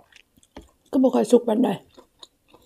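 Hands tear and rustle through food on a plate.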